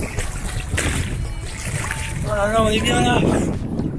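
Water sloshes and splashes around a swimmer.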